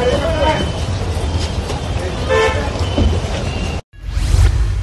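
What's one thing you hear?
A crowd of men talks and shouts loudly outdoors.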